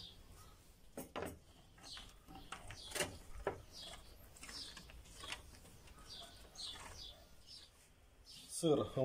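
Cheese scrapes against a metal grater in quick strokes.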